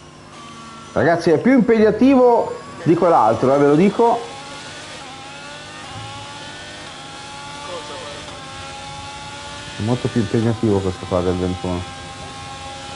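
A young man speaks loudly and with animation into a microphone.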